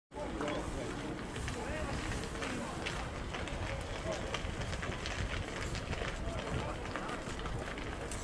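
Men call out and talk far off across an open field.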